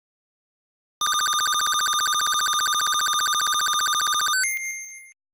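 A rapid electronic beeping ticks steadily as a counter rolls up.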